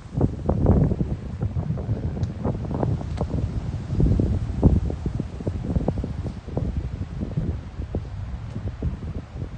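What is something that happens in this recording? Wind gusts outdoors, rumbling and buffeting.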